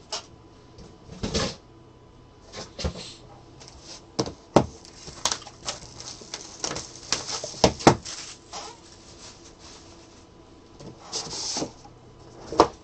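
Cellophane wrapping crinkles as hands tear it.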